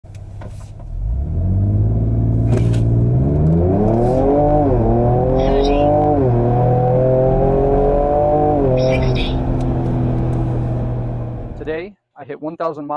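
An engine roars as a vehicle accelerates hard, rising in pitch and dropping briefly at each gear change.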